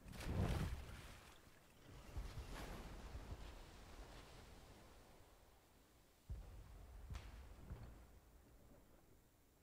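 Waves wash and splash against a boat's hull.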